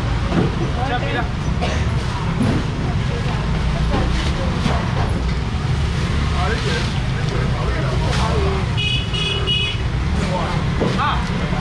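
A young man talks with customers nearby.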